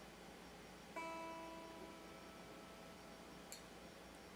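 A single electric guitar note rings out and slowly fades.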